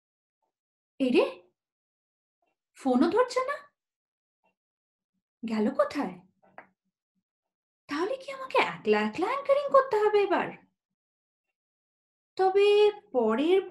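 A woman speaks expressively and close, with pauses between phrases.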